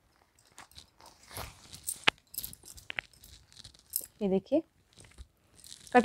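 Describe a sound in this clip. Fabric rustles softly as a cloth is unfolded and spread out.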